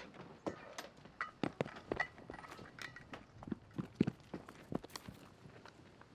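Footsteps tap outdoors.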